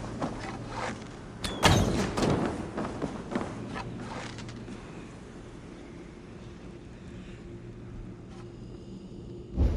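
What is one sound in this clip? A bowstring creaks as a bow is drawn back.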